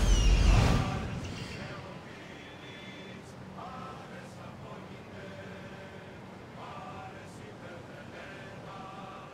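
Waves wash against the hull of a sailing ship.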